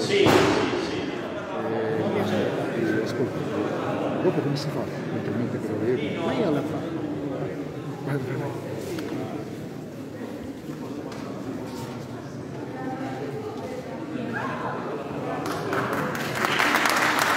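A group of men sing together in deep close harmony, echoing in a large hall.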